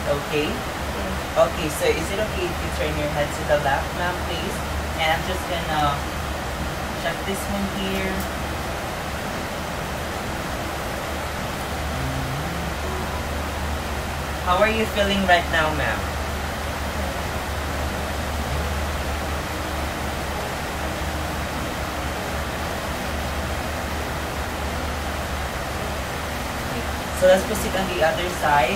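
A young man speaks quietly nearby, in short bursts.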